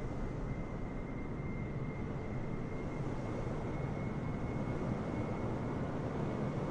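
A high engine whine holds steady.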